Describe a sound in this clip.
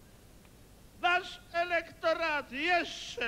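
An elderly man speaks loudly into a microphone, heard over loudspeakers in a large hall.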